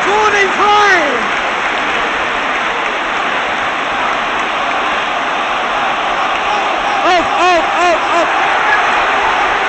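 A stadium crowd chants loudly in unison.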